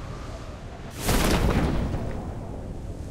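A parachute bursts open with a loud flapping whoosh.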